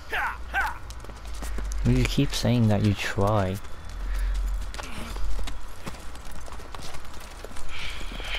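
Horses' hooves clop on a gravel track.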